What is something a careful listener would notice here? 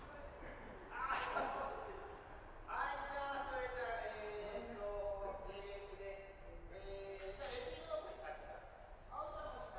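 Adults' voices call out from across a large echoing hall.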